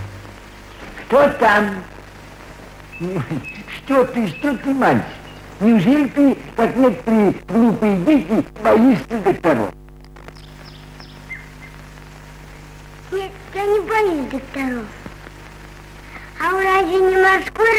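A young child calls out tearfully.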